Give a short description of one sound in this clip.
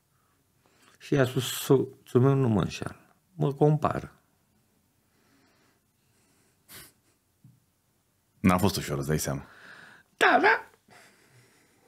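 An older man talks with animation into a close microphone.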